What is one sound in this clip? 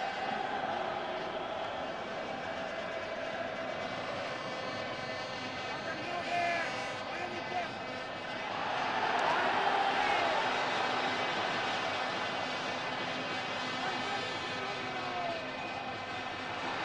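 A large stadium crowd murmurs steadily and swells into a roar.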